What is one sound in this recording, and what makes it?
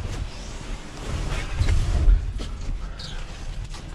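Carpet scraps rustle and scrape as they are pushed around inside a metal bin.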